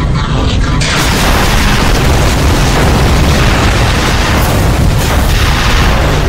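Loud explosions boom and roar.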